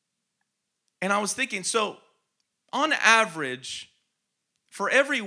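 A man speaks with animation into a microphone, in short phrases with pauses.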